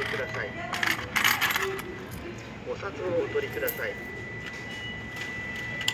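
A ticket machine whirs as it pulls in a banknote.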